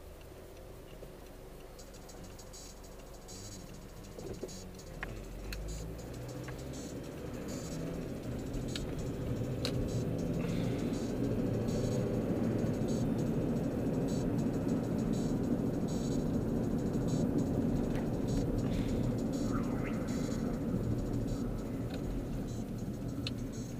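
A car engine idles, then hums louder as the car speeds up.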